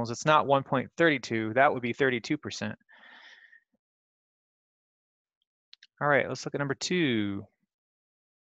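A young man speaks calmly, in short bursts with pauses.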